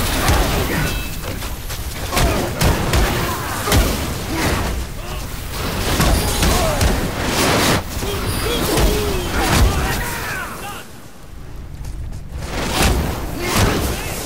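Creatures shriek.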